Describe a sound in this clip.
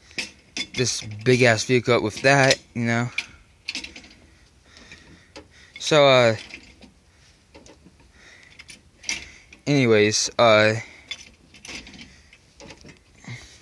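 Metal parts clink and rattle under a hand.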